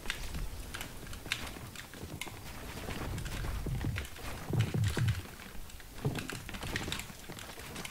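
Building pieces snap into place with quick clicks and knocks.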